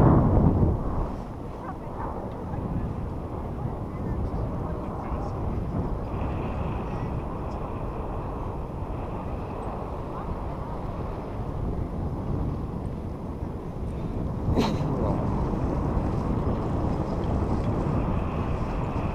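Wind rushes steadily past the microphone outdoors.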